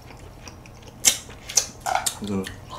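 A young man slurps noodles close to a microphone.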